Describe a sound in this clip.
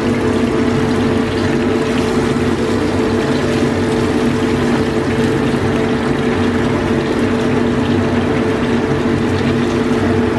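A wooden spatula scrapes against a frying pan.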